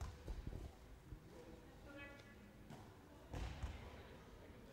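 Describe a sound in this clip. A handball bounces with dull thuds on the floor of an echoing sports hall.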